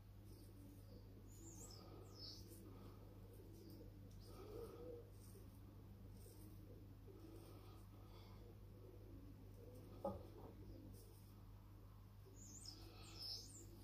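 A razor blade scrapes softly across stubble.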